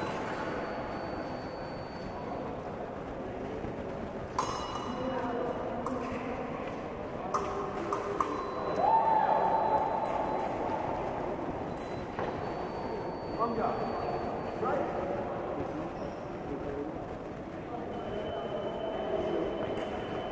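Voices murmur and echo through a large hall.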